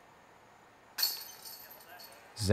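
A flying disc is thrown with a quick swoosh.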